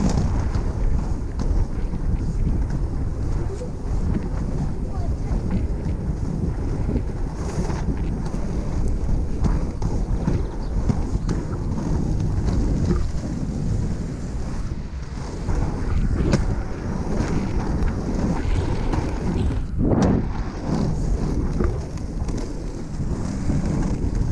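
Inline skate wheels roll and rumble steadily on rough pavement.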